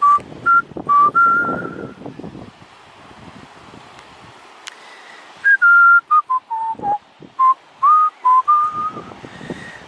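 Waves wash gently against rocks along the shore.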